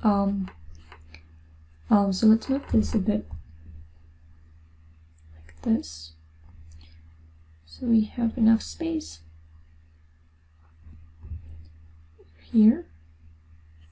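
A young woman talks calmly into a close microphone, in short bursts with pauses.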